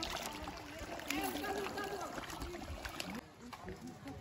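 Fish splash and churn at the water's surface.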